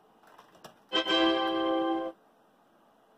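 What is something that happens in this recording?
A short electronic chime plays from computer speakers.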